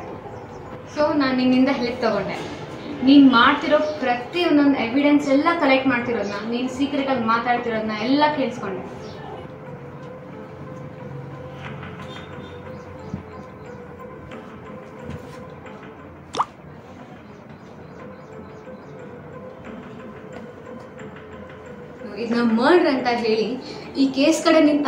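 A young girl talks with animation close to the microphone.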